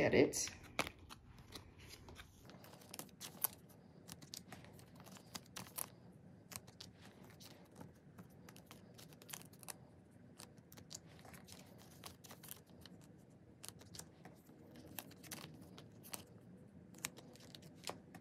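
Plastic card sleeves rustle and crinkle as cards are handled.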